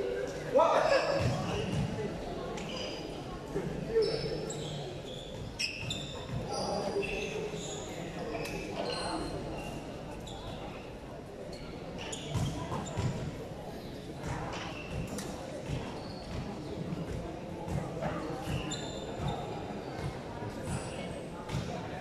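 A crowd of young people chatter and call out in a large echoing hall.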